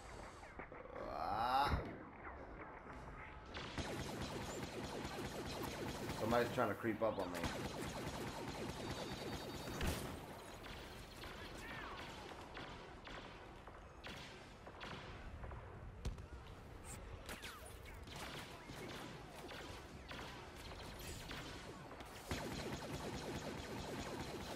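Laser blasters fire with sharp zapping shots.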